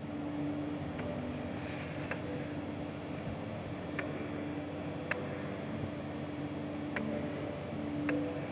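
A paper card slides and taps on a wooden table.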